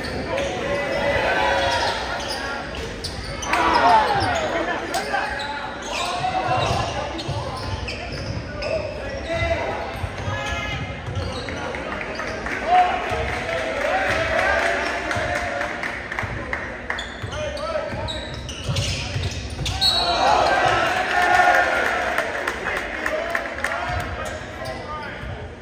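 A crowd of spectators talks and shouts in an echoing gym.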